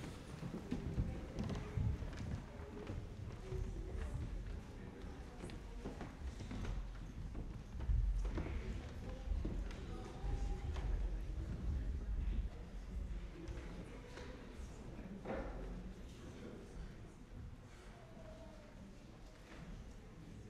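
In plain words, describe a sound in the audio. A piano plays softly.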